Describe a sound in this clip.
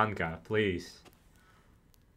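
A man speaks sternly.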